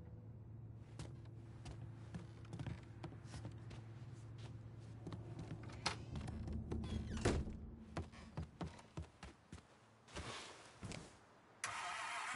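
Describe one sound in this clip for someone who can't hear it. Footsteps thud on creaky wooden floors and stairs.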